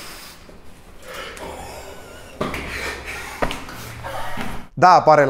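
Footsteps hurry up stairs.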